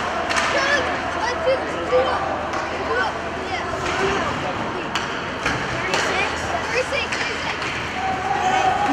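A crowd murmurs and calls out in an echoing rink.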